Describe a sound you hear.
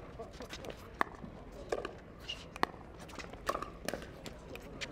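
Paddles strike a plastic ball with sharp hollow pops, back and forth.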